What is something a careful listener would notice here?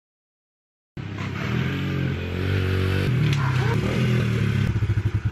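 A small motorbike engine revs and putters close by.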